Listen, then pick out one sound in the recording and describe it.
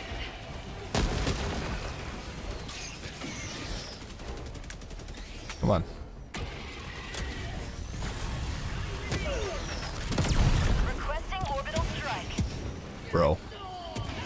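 Explosions boom with deep thuds.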